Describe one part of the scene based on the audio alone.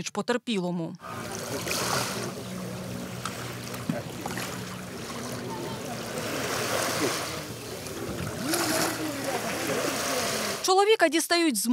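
Water splashes against the side of a boat.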